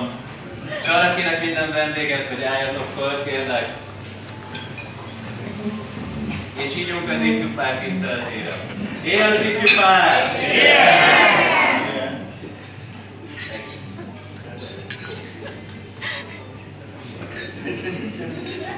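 A crowd chatters loudly in a large echoing room.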